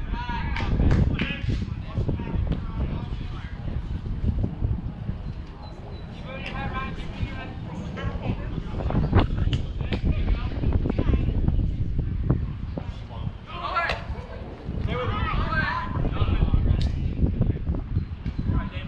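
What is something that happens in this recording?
A small crowd of spectators chats in the distance, outdoors.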